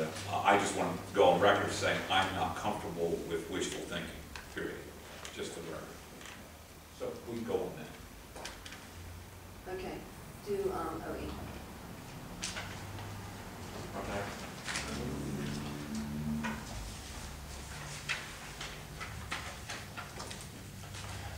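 Men talk in turn around a table, heard from across a quiet room.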